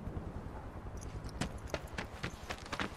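Footsteps run quickly across hard ground.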